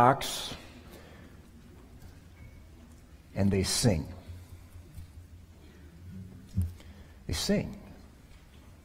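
A man speaks calmly into a microphone in an echoing hall, in short bursts.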